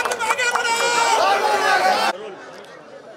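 A crowd of men chants slogans loudly outdoors.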